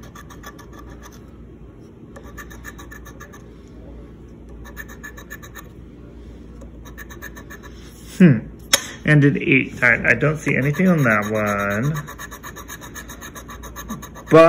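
A coin scratches rapidly across a card in short, repeated strokes.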